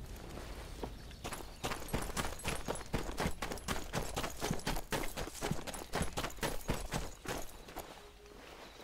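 Footsteps crunch quickly on a gravel path.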